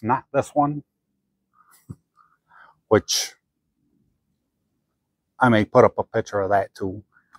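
A man speaks calmly close by, with pauses.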